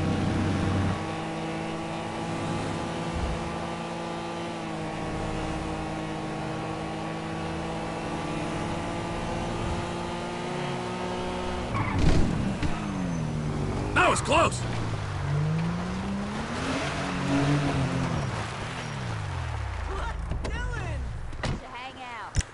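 A car engine drones steadily, then revs up and down.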